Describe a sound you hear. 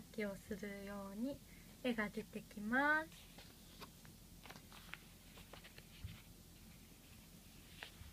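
Stiff cards tap and rustle as a hand handles them.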